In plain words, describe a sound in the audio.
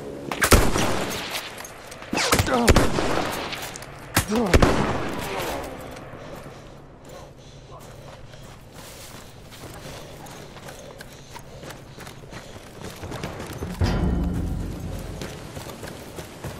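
Loud explosions boom and rumble nearby.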